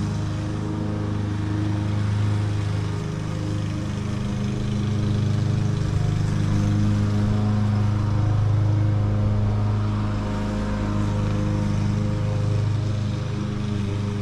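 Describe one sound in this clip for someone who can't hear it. A lawn mower engine drones steadily nearby, rising and falling slightly.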